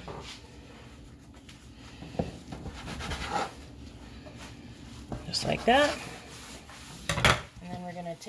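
A metal dough scraper knocks on a countertop.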